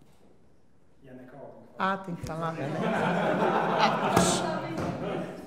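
A woman speaks expressively close to a microphone.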